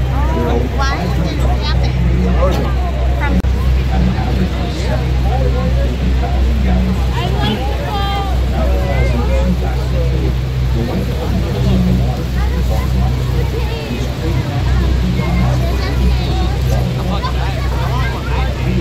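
A large waterfall thunders with a deep, steady roar.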